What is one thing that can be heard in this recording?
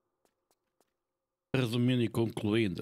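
Footsteps tread softly on dirt.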